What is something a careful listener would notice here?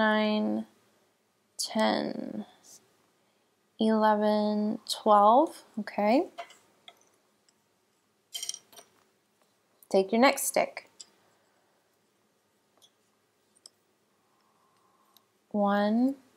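Wooden knitting needles click softly against each other.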